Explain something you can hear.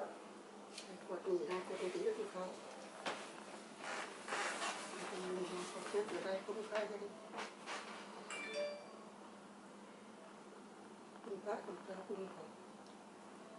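An elderly woman speaks softly, close by.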